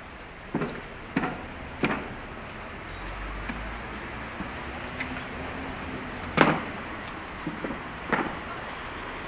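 Footsteps tap on stone paving now and then.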